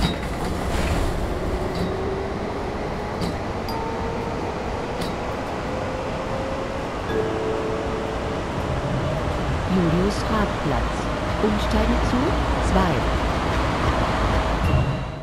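A tram motor whines, rising in pitch as the tram speeds up.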